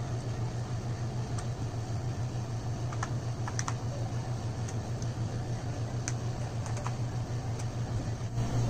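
Small plastic clicks and rustles sound as cables are handled.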